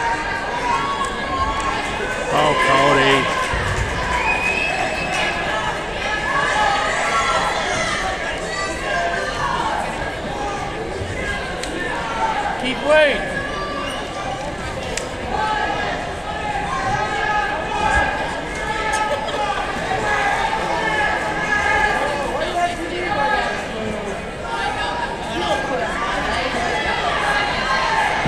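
Wrestlers thud and scuffle on a mat.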